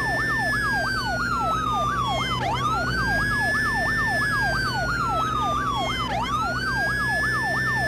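A police siren wails and yelps rapidly, close by.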